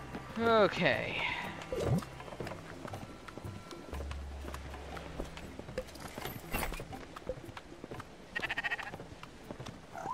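Soft game interface chimes sound as menu items are selected.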